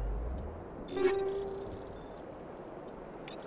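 Electronic menu beeps chirp in quick succession.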